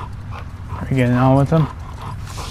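A dog barks loudly.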